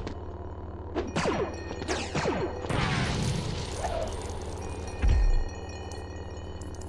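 A lightsaber hums and swooshes.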